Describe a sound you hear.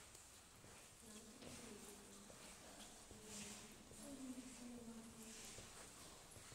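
A woman talks quietly nearby in an echoing room.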